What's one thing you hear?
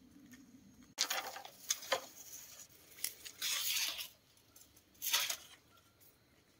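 Bamboo poles clatter and rattle against the ground.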